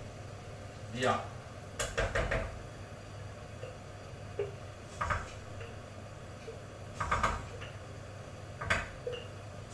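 A pan clatters on a stove.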